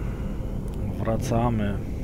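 A man speaks briefly into a headset microphone.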